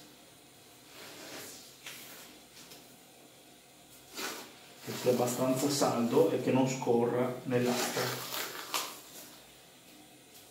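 Adhesive tape crackles and rips as it is pulled off a roll.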